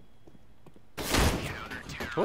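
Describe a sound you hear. A rifle fires a quick burst of shots.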